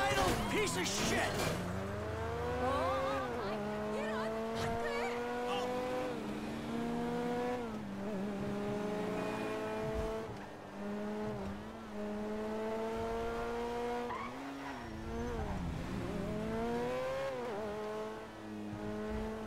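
A car engine revs up and drops in pitch as it shifts through gears.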